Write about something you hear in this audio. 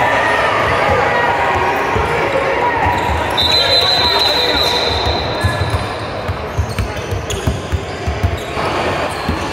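Young players shout and call out across the echoing gym.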